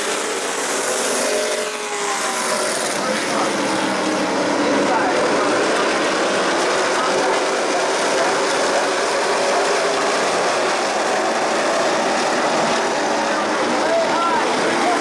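Many race car engines roar loudly as cars speed around an outdoor track.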